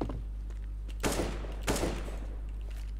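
Gunshots crack from a rifle.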